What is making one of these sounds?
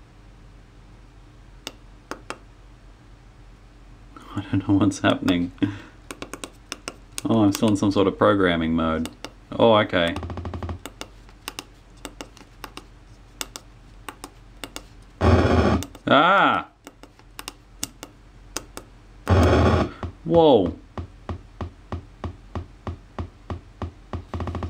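Small buttons click under a finger.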